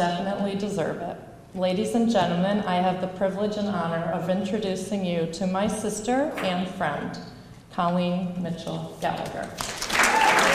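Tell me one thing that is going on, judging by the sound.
A woman speaks calmly into a microphone, heard through loudspeakers.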